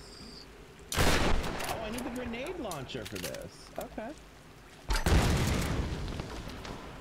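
Loud explosions boom and crash.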